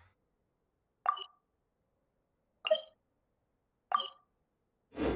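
Soft menu clicks tick one after another.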